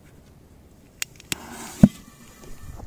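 A metal can thumps down on the ground.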